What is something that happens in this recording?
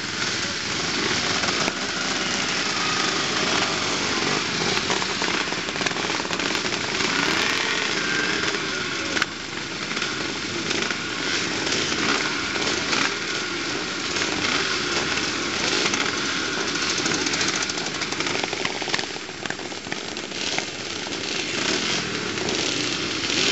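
Dirt bikes accelerate away with rising engine whines.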